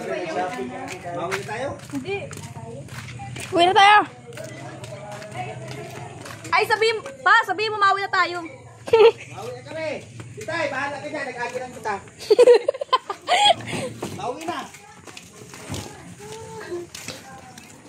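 A young woman talks and laughs close by, with animation.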